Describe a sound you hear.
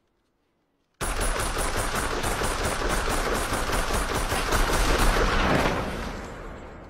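An automatic rifle fires a long, rapid burst.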